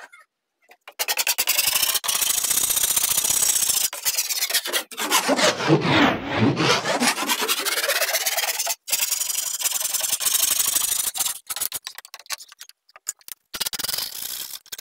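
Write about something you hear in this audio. A metal file rasps back and forth against a board in quick strokes.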